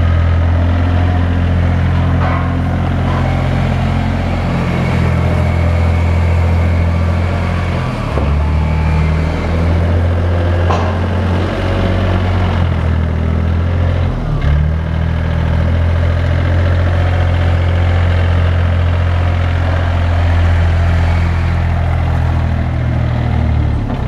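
A diesel engine of a small wheel loader rumbles steadily close by.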